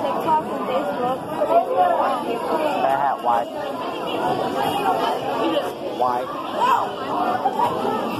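A young man talks close to a phone microphone.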